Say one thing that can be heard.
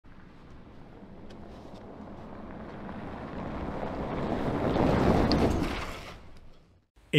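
Tyres crunch and spray loose gravel.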